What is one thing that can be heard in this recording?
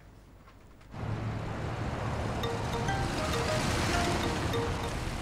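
Car engines hum and tyres roll on a road.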